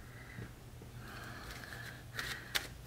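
Playing cards rustle softly as a hand shuffles them.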